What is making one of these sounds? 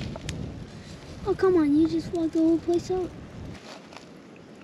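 Water gurgles and bubbles softly close by.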